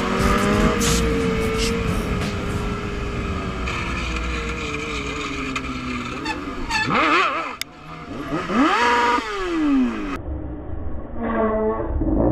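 A motorcycle engine hums close by and revs up and down.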